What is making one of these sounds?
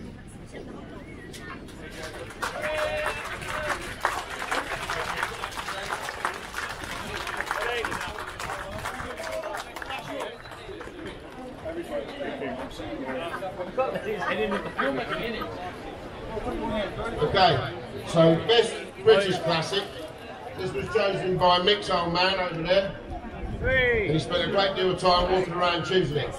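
A crowd murmurs and chatters in the background.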